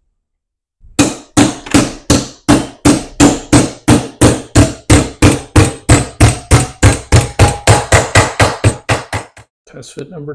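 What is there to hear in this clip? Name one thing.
A hammer strikes metal in rapid, ringing blows.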